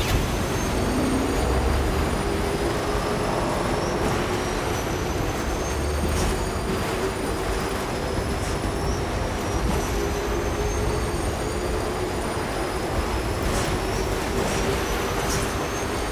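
A motorbike engine hums steadily as it rides through snow.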